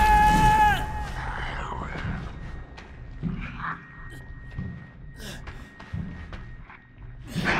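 Heavy footsteps thud slowly on hard ground.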